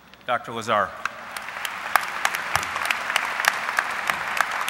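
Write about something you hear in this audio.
A crowd applauds steadily.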